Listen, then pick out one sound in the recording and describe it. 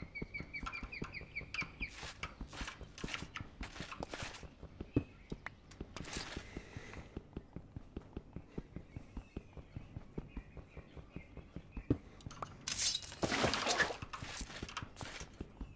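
A pickaxe chips at stone with rapid, steady taps.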